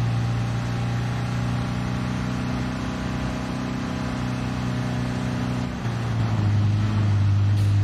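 A car engine drones steadily at high revs.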